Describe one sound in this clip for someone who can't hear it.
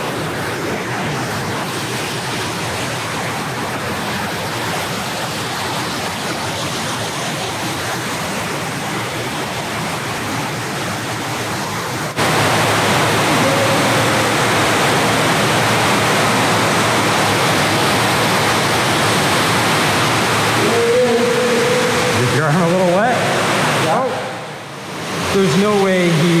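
Water rushes through a concrete tunnel.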